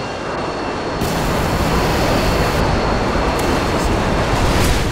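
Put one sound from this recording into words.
A jet plane roars overhead.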